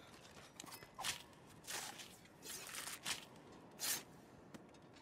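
A blade strikes a large beast's hide with sharp thuds.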